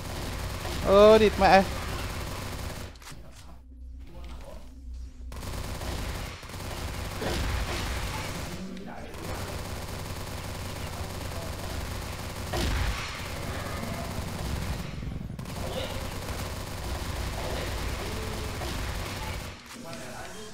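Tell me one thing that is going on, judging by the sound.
Rapid gunfire blasts in bursts.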